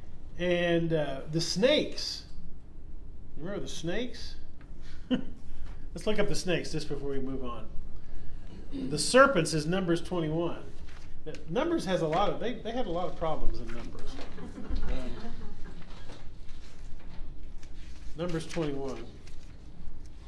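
A middle-aged man speaks calmly nearby.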